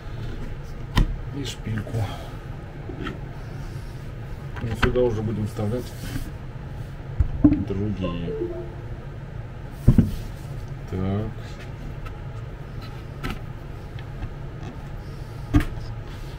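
Wooden pegs and panels knock and tap sharply against each other.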